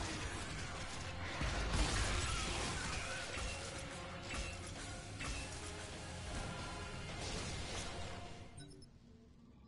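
Gunfire and explosions boom loudly and continuously.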